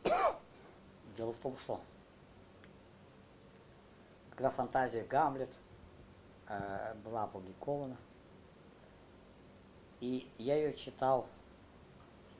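An older man speaks calmly and quietly, close by, in short phrases with pauses.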